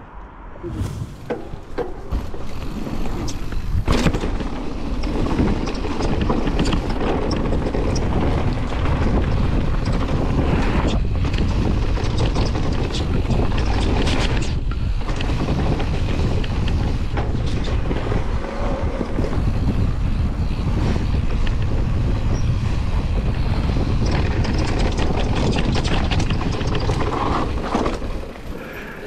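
Wind rushes loudly past a rider.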